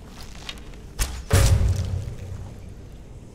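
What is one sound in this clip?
A bowstring twangs as an arrow is loosed with a sharp thud.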